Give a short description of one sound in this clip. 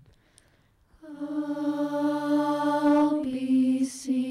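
A group of young women sings in harmony.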